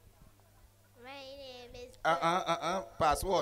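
A girl speaks into a microphone with animation.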